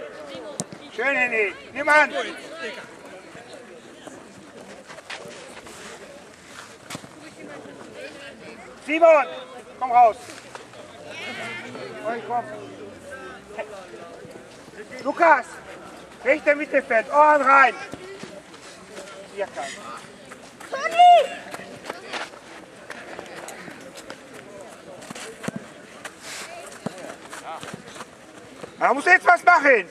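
Young boys shout to each other across an outdoor football pitch.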